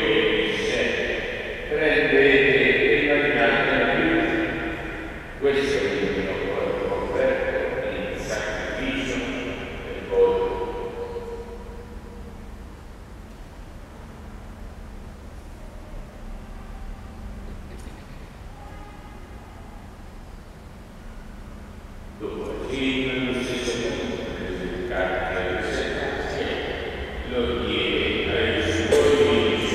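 A man chants aloud, echoing in a large hall.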